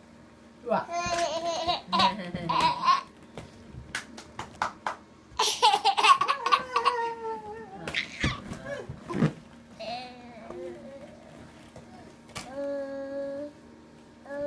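Plastic balls clatter against each other.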